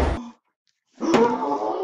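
A boy talks with animation.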